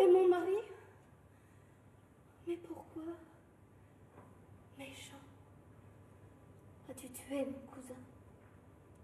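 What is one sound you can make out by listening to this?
A young woman speaks with emotion, her voice ringing in a large hall.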